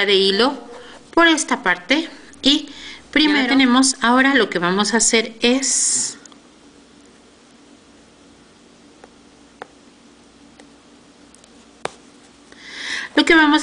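A woman talks calmly close by.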